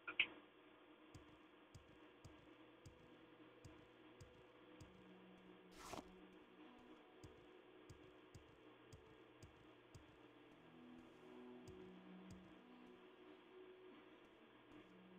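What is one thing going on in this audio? Footsteps thud steadily on rough ground.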